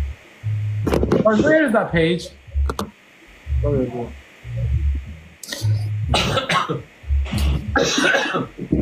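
A young man talks casually through a phone microphone.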